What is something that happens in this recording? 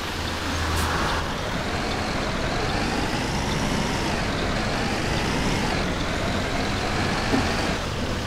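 A diesel city bus engine pulls away, rising in pitch.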